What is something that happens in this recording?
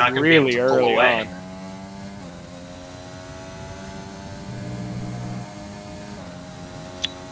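A racing car engine whines at high revs, rising in pitch and dropping briefly with each gear change.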